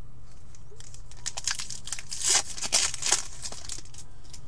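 A foil wrapper crinkles as a pack is torn open.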